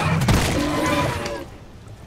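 A gun fires rapidly at a creature.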